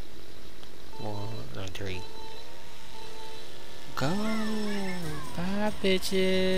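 A small kart engine revs up and down, whining loudly.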